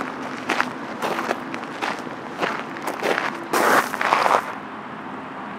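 A small dog's paws patter on gravel.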